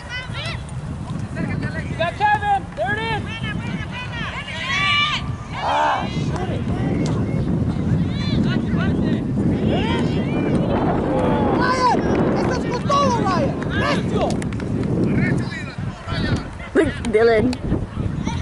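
Young players shout to each other from across a field.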